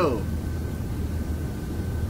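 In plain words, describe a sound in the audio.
A young man chuckles softly close by.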